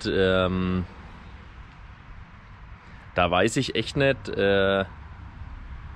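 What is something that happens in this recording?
A young man speaks close up, in short bursts with pauses.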